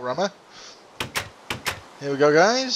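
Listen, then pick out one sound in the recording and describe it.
Wooden doors creak open with sharp clacks.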